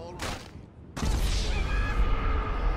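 A body slams hard onto pavement.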